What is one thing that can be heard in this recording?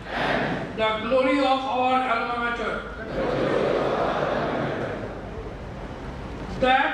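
A large group of young men and women recite together in unison, their voices echoing in a hall.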